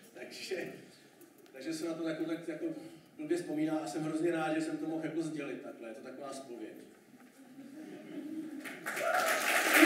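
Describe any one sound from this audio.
A man speaks into a microphone, his voice carried over loudspeakers in a hall.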